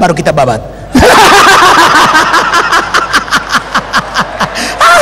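A man laughs heartily.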